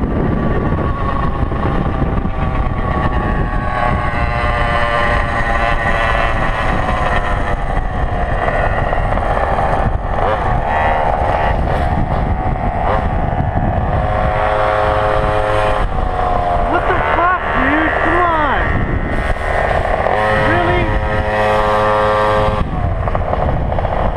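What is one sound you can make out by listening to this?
The high-pitched engine of a two-stroke gas stand-up scooter screams, rising and falling in pitch.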